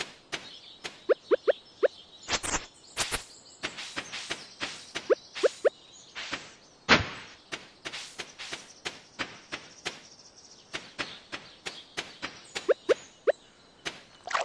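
Quick footsteps patter on dry ground.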